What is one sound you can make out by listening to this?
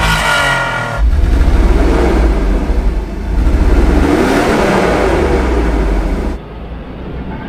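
A car engine revs up and down loudly through the exhaust.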